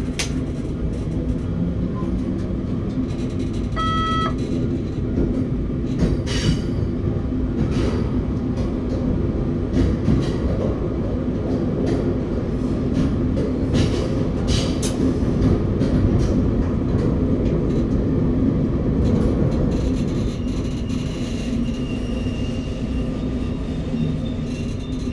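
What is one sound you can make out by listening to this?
A train rumbles steadily through a tunnel.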